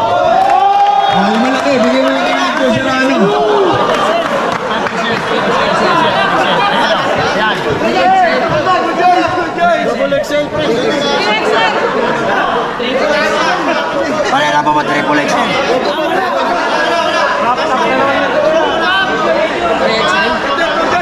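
A crowd chatters and cheers in the background.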